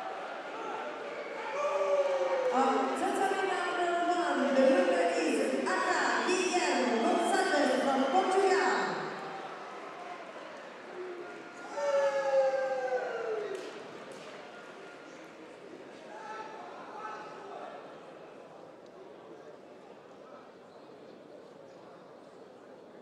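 A crowd murmurs faintly in a large echoing hall.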